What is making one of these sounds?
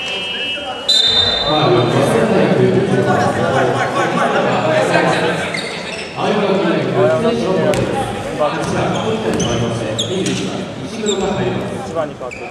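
A crowd of young spectators shouts and chatters loudly.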